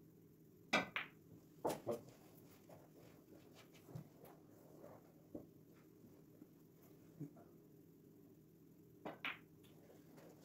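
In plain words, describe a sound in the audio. Snooker balls click against each other.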